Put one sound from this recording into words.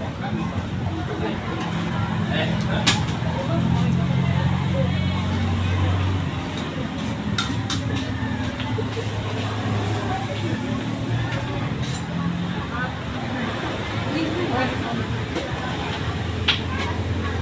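Several adults chat and talk over one another nearby.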